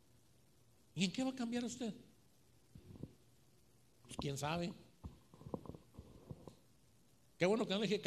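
A man preaches with animation through a microphone and loudspeakers.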